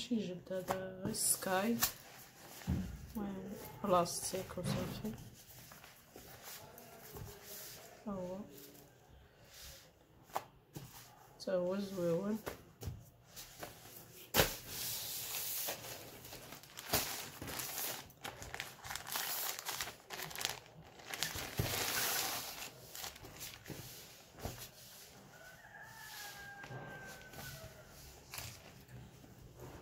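Hands rustle and crumple stiff synthetic fabric.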